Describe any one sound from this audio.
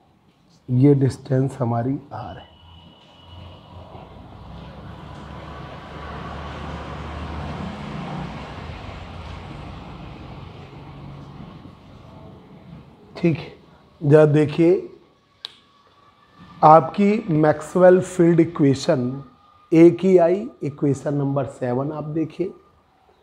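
A man speaks calmly and clearly, as if explaining a lesson.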